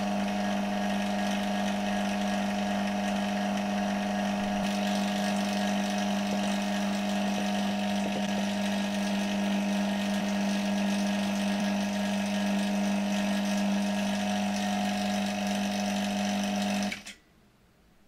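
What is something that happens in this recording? A vacuum pump hums steadily and then stops.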